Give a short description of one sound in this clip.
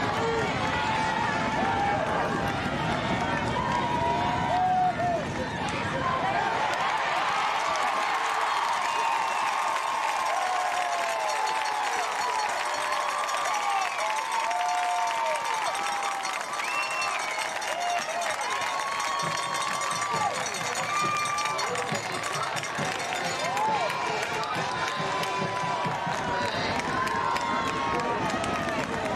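A large crowd cheers and shouts outdoors from the stands.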